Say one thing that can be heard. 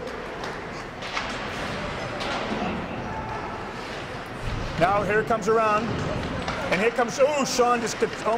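A crowd murmurs in a large echoing rink.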